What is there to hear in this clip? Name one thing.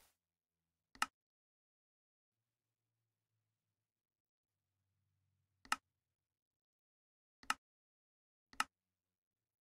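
A menu button clicks sharply.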